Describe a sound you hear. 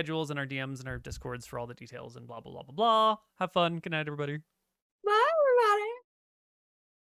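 Young women laugh over an online call.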